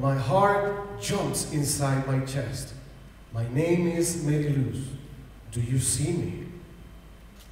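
A man speaks into a microphone, heard through loudspeakers in a large echoing hall.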